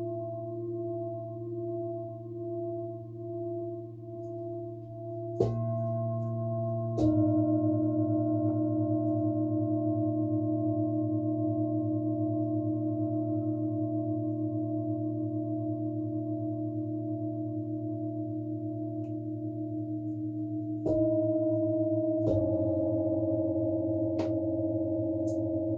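Metal singing bowls ring with long, wavering tones that hum and overlap.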